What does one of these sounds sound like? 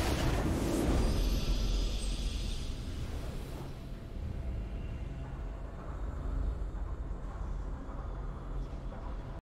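Triumphant game music swells and slowly fades.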